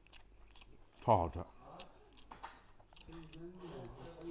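A young man slurps and chews food noisily.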